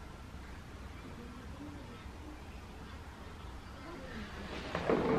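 A young woman murmurs softly close by.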